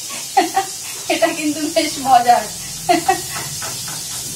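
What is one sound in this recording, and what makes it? A woman laughs close by.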